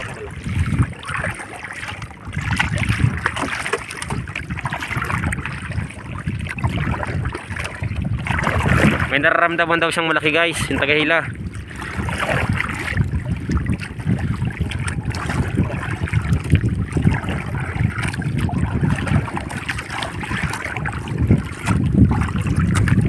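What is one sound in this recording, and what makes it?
Small waves splash and slap against the side of a boat.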